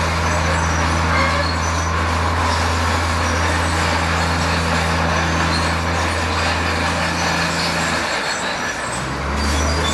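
Rocks scrape and grind under a bulldozer blade.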